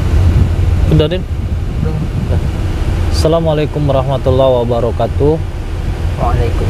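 A man speaks casually from the back seat.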